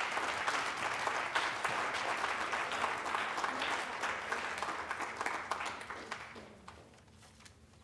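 An audience claps in a large echoing hall, and the applause fades away.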